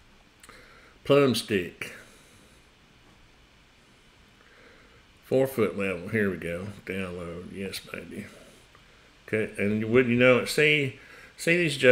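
A middle-aged man talks calmly and close to a microphone, in short bursts with pauses.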